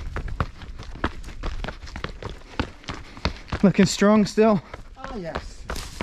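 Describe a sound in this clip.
Running footsteps thud and crunch on a rocky dirt trail.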